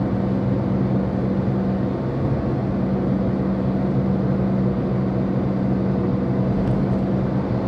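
Tyres roll on the road surface with a steady rumble.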